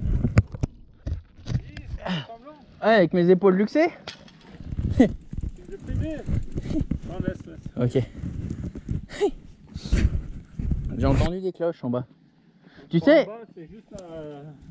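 A bicycle rattles and clicks over rough ground.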